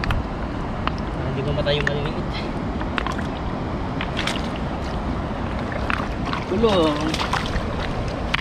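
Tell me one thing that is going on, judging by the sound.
Stones clack and knock together underwater as hands search between them.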